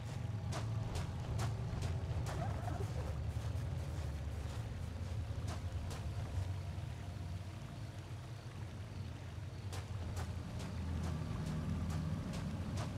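Footsteps tread on a gravel path.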